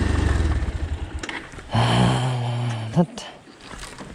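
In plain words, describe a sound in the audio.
A motorcycle engine rumbles.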